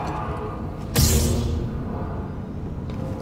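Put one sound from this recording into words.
A lightsaber ignites with a sudden loud hiss.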